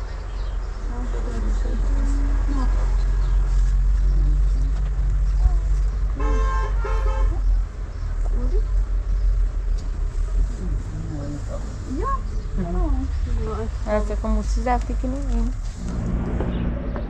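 A woman talks nearby.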